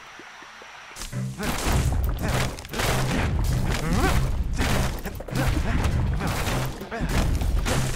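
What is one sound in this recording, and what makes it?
Wooden crates smash and break apart in quick bursts.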